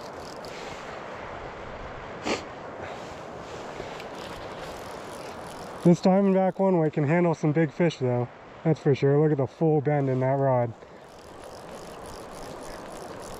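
River water flows and laps gently.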